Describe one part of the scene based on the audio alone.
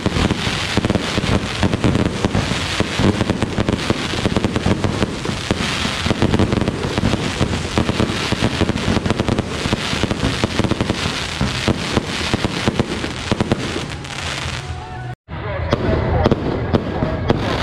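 Fireworks crackle and pop rapidly overhead.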